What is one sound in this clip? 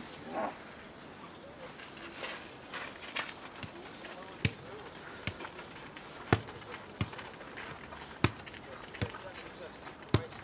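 Footsteps shuffle on artificial turf outdoors.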